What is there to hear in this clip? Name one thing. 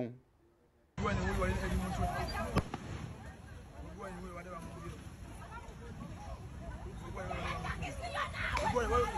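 A crowd shouts outdoors.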